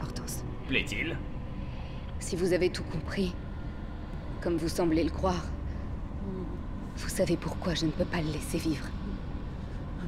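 A young woman speaks calmly and coldly.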